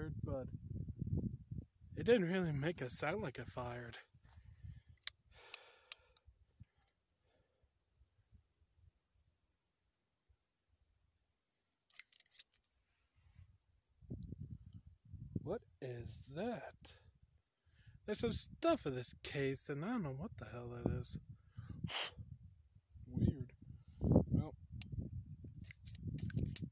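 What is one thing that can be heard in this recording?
A young man talks close by, outdoors in light wind.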